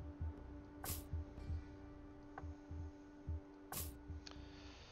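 Short menu clicks sound now and then.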